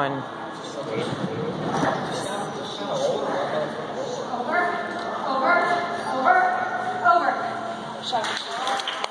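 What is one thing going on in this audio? A woman calls out excitedly to a dog in a large echoing hall.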